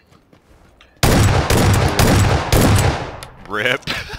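Rifle shots fire in a rapid burst.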